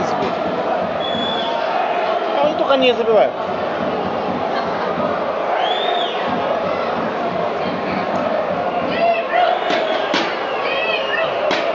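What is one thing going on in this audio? Fans whistle sharply from the stands.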